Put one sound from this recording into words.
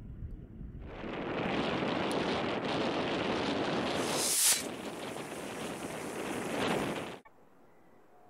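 A rocket motor roars with a steady hissing rush.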